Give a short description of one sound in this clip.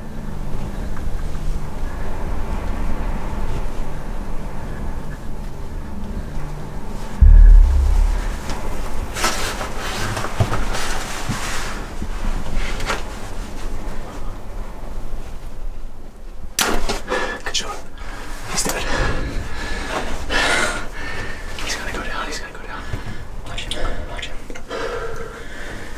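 A man speaks quietly in a low voice close by.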